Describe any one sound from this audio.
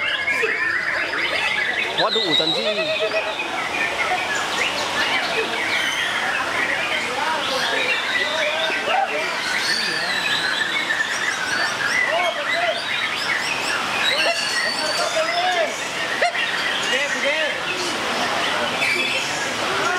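A white-rumped shama sings varied whistling phrases.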